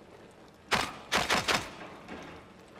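Gunshots ring out in a quick burst.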